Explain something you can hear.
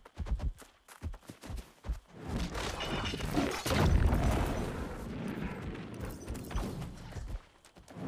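A bear growls and roars.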